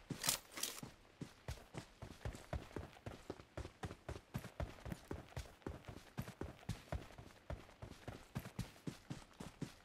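Quick footsteps thud steadily on grass.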